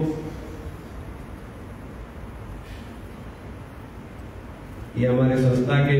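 A man sings slowly through a microphone, heard over loudspeakers.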